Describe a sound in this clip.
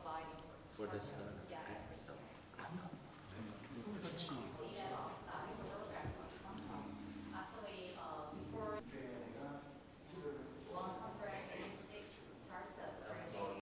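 A middle-aged man speaks calmly, explaining at close range.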